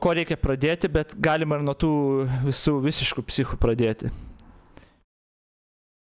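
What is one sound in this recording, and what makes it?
A middle-aged man speaks calmly into a microphone, close by.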